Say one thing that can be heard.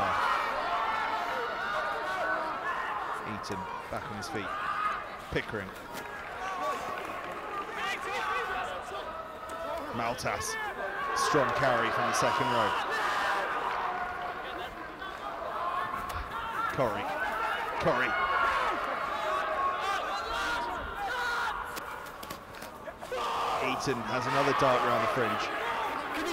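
Young men shout to each other outdoors on a sports field.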